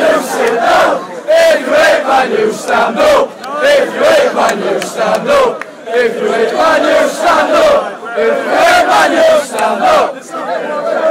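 A large crowd of men chants and sings loudly outdoors.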